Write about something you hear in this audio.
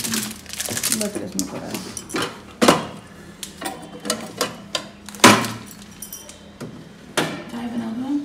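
Plastic fridge parts knock and rattle as a hand moves them.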